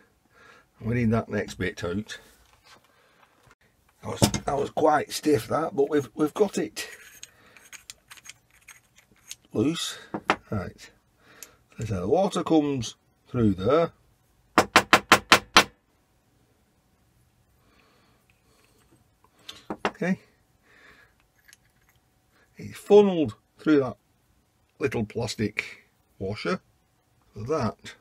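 Small metal pipe fittings click and clink as they are handled.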